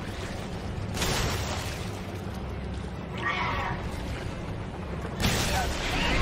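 A pistol fires loud gunshots that echo.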